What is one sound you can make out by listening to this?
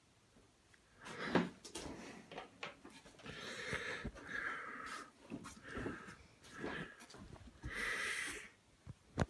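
A large dog huffs and snorts through its nose.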